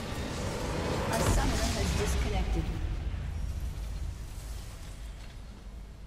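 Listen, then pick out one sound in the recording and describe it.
Magic spells burst and crackle in a fight in a video game, then fade away.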